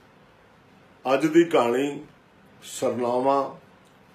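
An elderly man reads aloud slowly and expressively, close by.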